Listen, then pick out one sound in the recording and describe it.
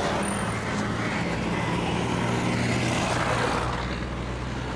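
A bus drives past close by with a rumbling engine.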